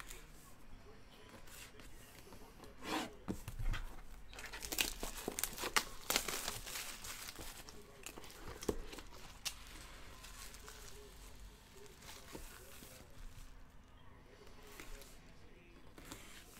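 A blade slits through plastic wrap.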